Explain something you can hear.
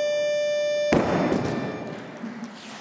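A heavy barbell crashes down onto a platform with a loud thud.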